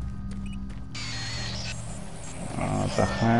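An electronic alarm sounds suddenly and keeps ringing.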